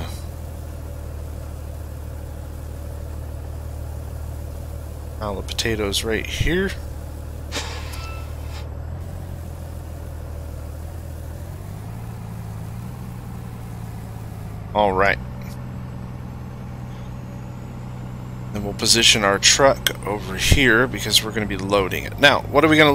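A truck engine idles with a low steady rumble, then revs higher as the truck pulls away.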